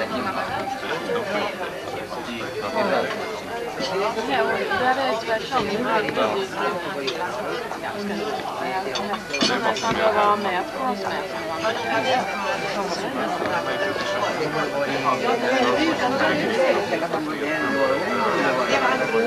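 Many adults chat and talk over each other nearby in a busy room.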